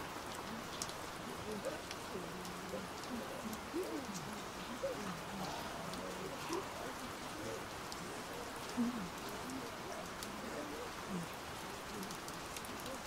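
A young man speaks softly nearby.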